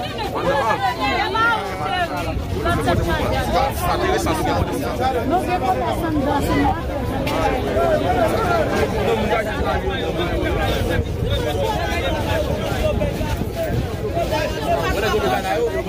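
A large crowd of men and women talk and shout all at once close by, outdoors.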